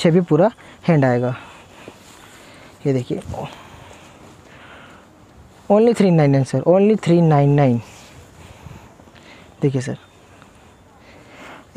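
Fabric rustles as garments are handled and lifted.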